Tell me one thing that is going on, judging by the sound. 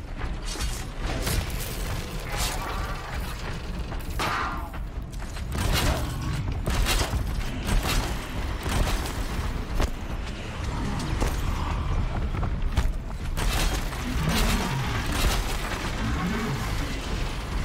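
Explosions burst and crackle repeatedly.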